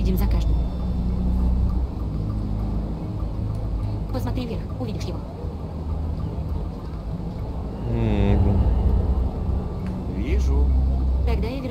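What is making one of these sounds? Men and women chat quietly in the background.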